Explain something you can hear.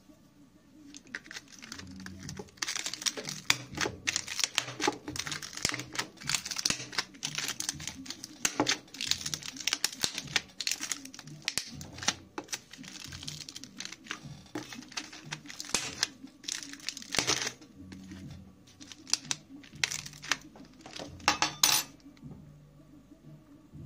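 Plastic film crinkles and rustles under fingers.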